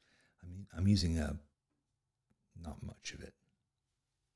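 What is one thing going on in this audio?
An older man speaks calmly into a microphone, close by.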